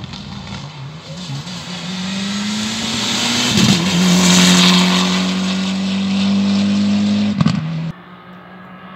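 A rally car engine roars loudly as the car speeds past close by.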